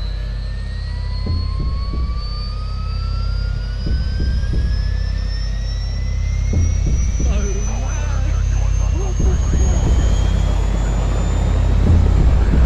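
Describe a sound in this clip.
Helicopter rotor blades thump as they turn.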